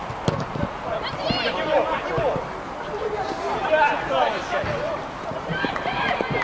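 Players call out to each other across an outdoor pitch.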